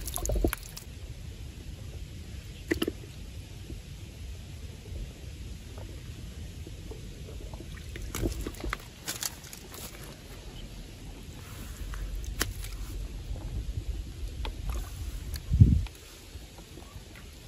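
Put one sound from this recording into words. Hands splash and scoop in shallow water.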